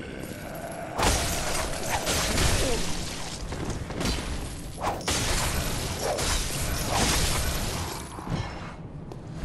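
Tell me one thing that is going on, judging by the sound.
Blades slash and strike flesh with wet, heavy impacts.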